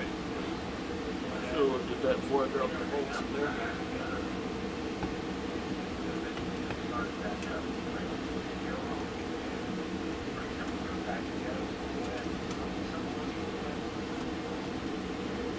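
A middle-aged man talks calmly close by.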